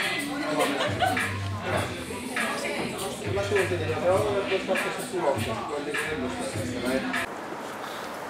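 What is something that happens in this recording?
People chat and murmur in a lively crowd.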